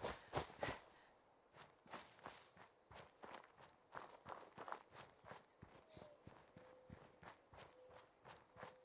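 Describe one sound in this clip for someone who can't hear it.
Footsteps crunch steadily through dry grass and brush.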